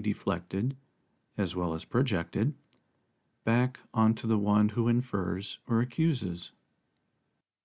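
A man speaks calmly and softly into a nearby microphone.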